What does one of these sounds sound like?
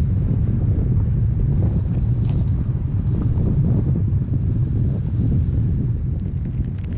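A car rumbles along a rough dirt track.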